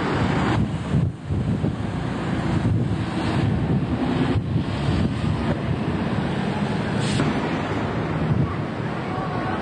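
A bus engine rumbles loudly as the bus pulls away.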